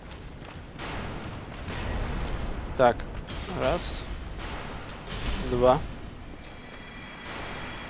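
Heavy metal weapons clang and strike.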